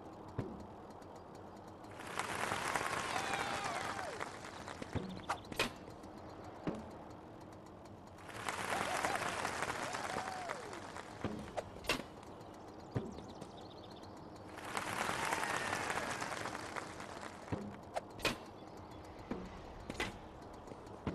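A ball is struck with a sharp, hollow thwack.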